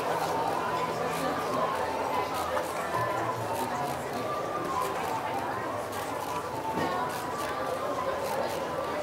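Men and women chatter at tables nearby in an open street.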